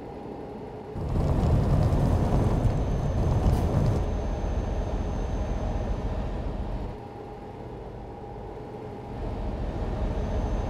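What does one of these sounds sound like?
Tyres roar on a motorway, growing louder at times.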